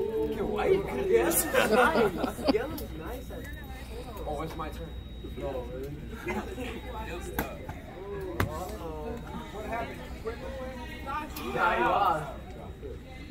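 Young men laugh together.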